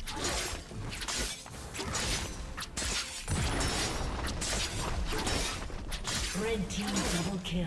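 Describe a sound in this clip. Video game combat sounds of magic blasts and hits crackle and thump rapidly.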